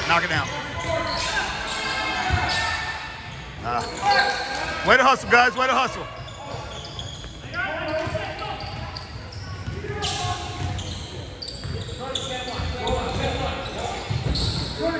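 Young players and spectators call out and chatter, echoing in a large gym.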